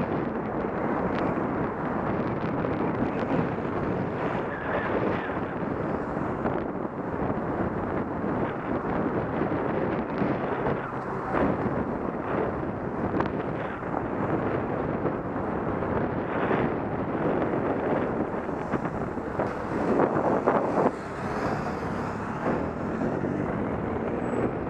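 Wind rushes loudly and steadily past.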